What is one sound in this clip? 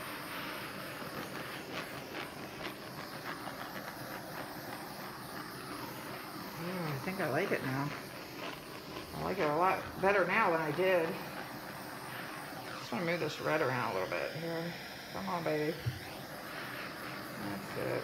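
A blowtorch hisses steadily close by.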